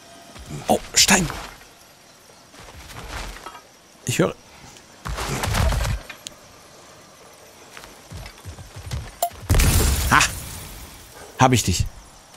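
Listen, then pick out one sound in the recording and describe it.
Heavy footsteps thud on rock and dry grass.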